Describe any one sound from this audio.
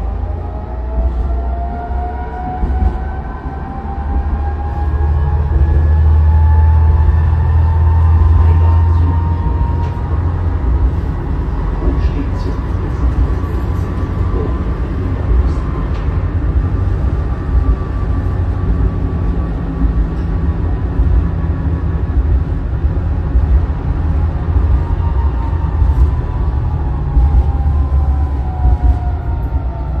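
A tram rumbles along its tracks, heard from inside.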